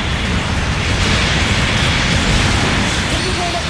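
A blast explodes loudly.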